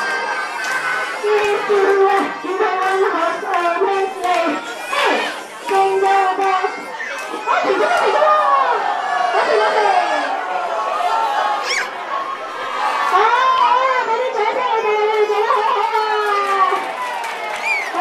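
Young children chatter and squeal nearby.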